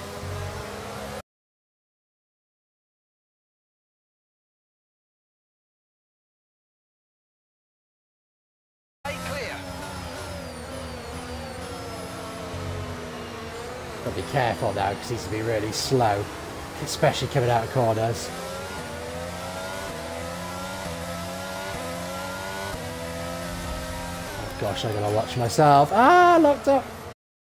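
A racing car engine whines and revs up and down.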